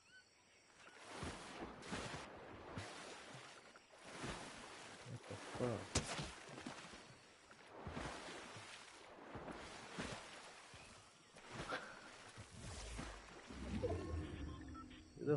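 A game character splashes and swims through water.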